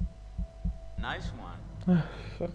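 A young man speaks in a low, tense voice close by.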